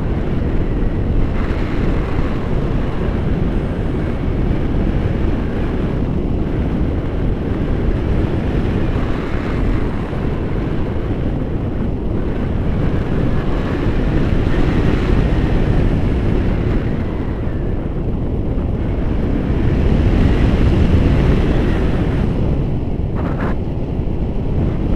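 Strong wind rushes and buffets loudly against a microphone throughout.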